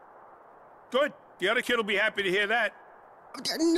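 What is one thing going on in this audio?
An older man with a gruff voice speaks eagerly.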